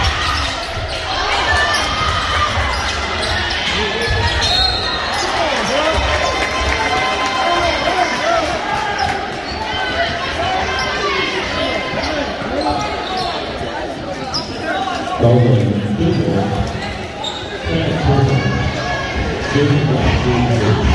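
A crowd chatters and cheers in a large echoing gym.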